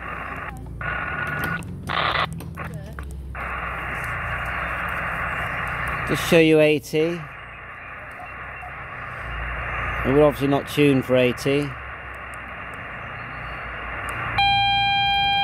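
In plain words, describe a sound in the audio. Static hisses from a radio receiver as it is tuned.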